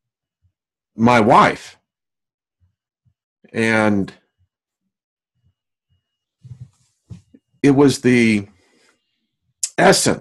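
A man speaks in short phrases over an online call, with pauses between them.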